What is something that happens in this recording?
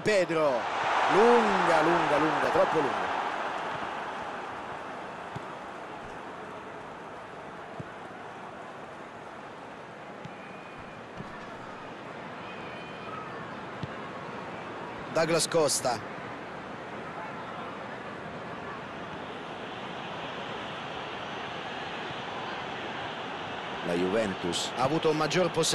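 A stadium crowd roars and then settles into a steady murmur.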